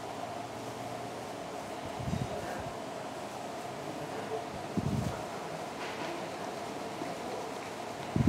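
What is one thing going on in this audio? A plastic basket rattles as coated pieces are shaken in it.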